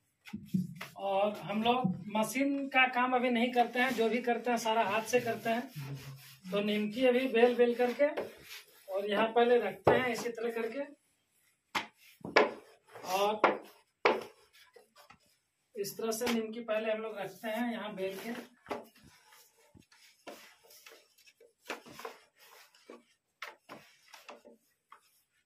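A rolling pin taps softly on a wooden board.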